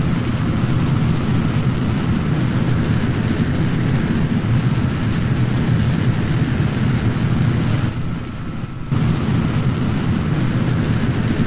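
Rocket engines roar steadily and briefly drop away before roaring again.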